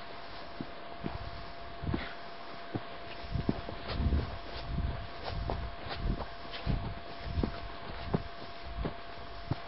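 Footsteps crunch and thud on dry leaves and soil.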